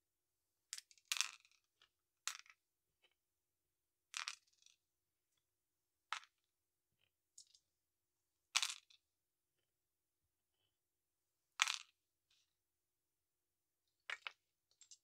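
Small plastic bricks click and clatter as they are snapped together.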